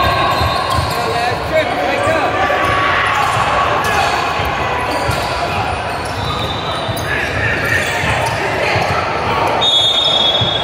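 Young players shout to each other in a large echoing gym.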